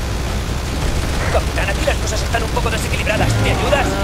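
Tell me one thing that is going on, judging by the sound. Men and women scream in panic.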